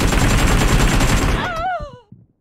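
Rapid gunfire rattles loudly in a video game.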